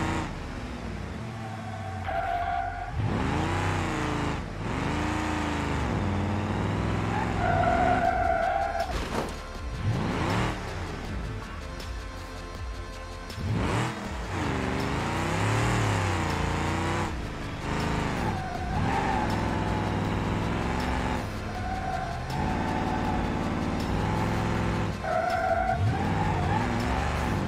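A car engine revs up and down as the car accelerates and shifts.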